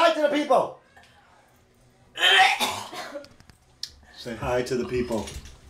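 A young woman retches and gags into a toilet close by.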